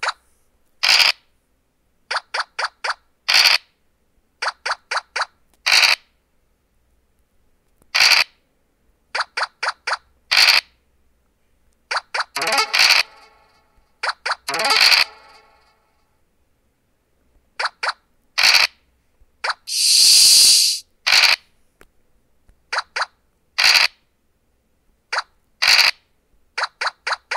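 Game pieces hop from square to square with short ticking blips.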